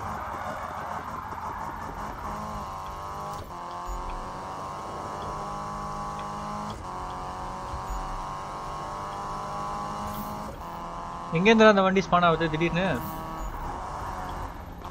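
A racing car's engine roars steadily at high revs.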